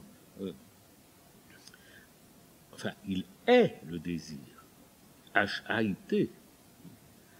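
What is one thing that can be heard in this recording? An elderly man speaks calmly and expressively into a close microphone, with pauses.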